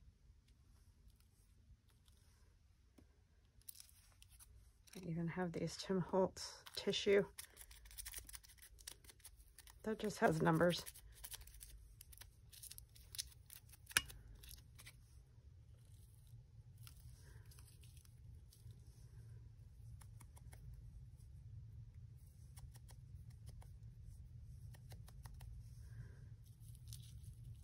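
Paper rustles and crinkles.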